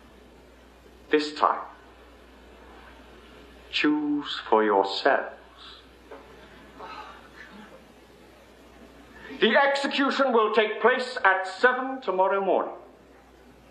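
A young man speaks firmly and clearly, close by, in an echoing room.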